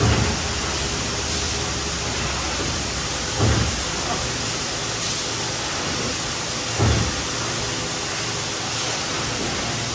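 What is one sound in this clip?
Machinery hums and whirs steadily in a large echoing hall.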